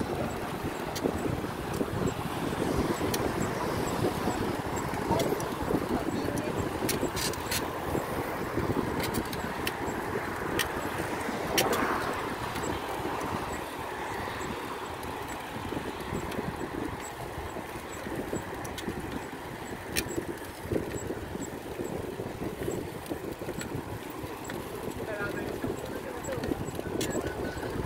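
A bicycle clicks and rattles now and then.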